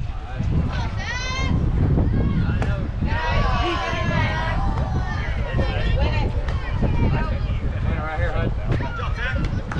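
Young people cheer and shout from nearby.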